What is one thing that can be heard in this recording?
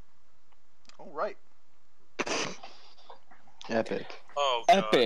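A young man speaks close to a microphone, casually and in short bursts.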